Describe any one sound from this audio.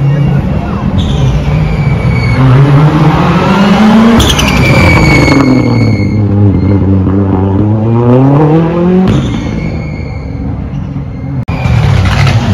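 A rally car races past close by, its engine roaring and dropping in pitch as it goes.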